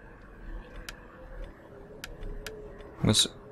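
A soft interface click sounds as a menu changes.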